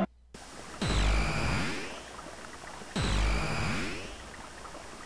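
A magical whooshing effect sweeps down twice.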